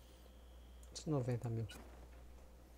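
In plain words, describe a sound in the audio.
A game menu chimes as a choice is confirmed.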